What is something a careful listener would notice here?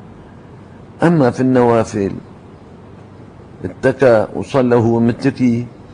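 An elderly man speaks slowly and calmly into a microphone, in short phrases.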